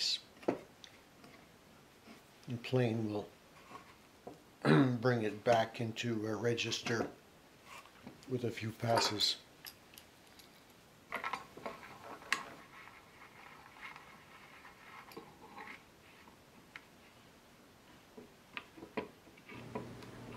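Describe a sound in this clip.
Metal clamps clink and knock against wood.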